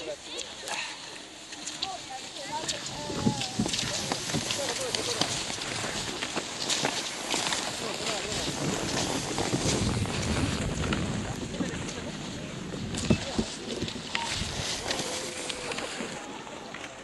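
Skis swish and scrape over packed snow as skiers glide past outdoors.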